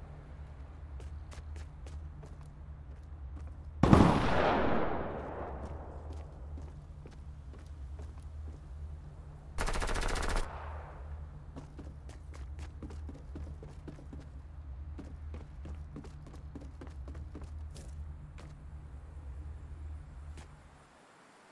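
Footsteps thud quickly across wooden floors and stairs.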